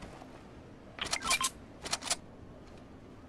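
A game weapon is picked up with short chiming clicks.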